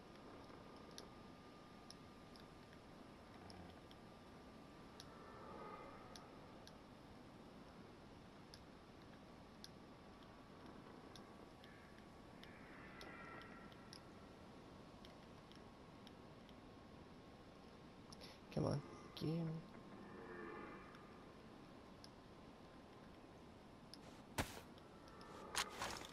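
Soft menu clicks tick now and then as items are selected.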